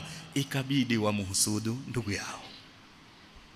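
A man preaches forcefully into a microphone.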